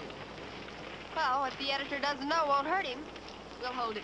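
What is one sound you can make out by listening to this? A young woman speaks and laughs brightly.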